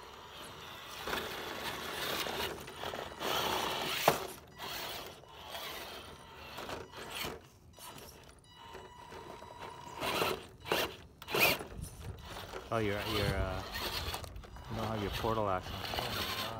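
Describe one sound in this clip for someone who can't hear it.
Plastic tyres scrape and knock against rock.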